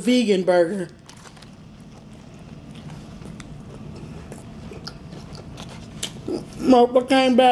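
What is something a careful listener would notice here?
A young man chews food noisily close by.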